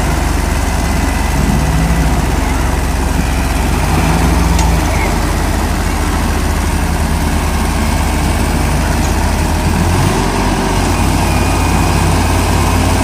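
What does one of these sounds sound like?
Two tractor diesel engines roar and strain loudly.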